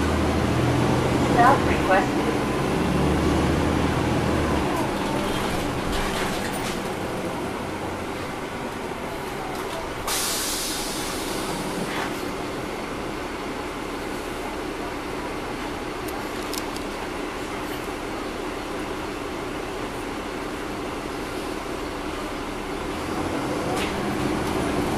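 A bus rattles and creaks over the road.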